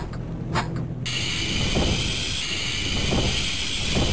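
A metal door slides open with a mechanical rumble.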